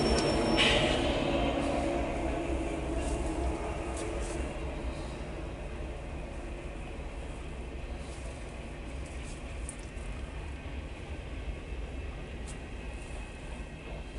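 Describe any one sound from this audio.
Freight cars rumble and clatter steadily along the rails.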